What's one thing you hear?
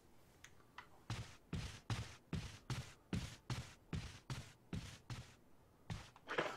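Footsteps tread steadily across a wooden floor.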